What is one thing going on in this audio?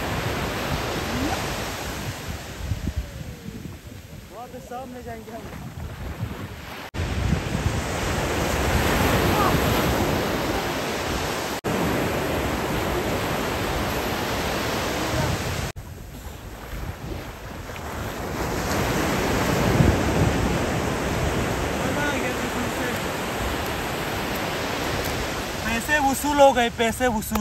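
Waves crash and wash up on a beach.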